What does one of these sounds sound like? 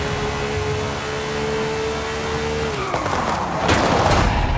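A racing car engine roars at high speed, then its pitch drops.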